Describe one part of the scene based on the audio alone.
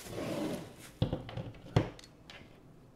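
A wooden stand knocks onto a table.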